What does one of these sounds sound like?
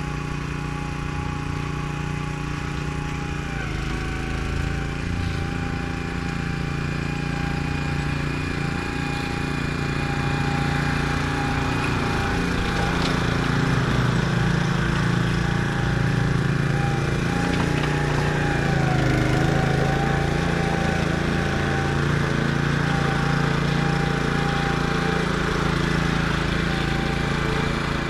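A riding lawn mower's engine hums steadily nearby, growing louder as it draws closer.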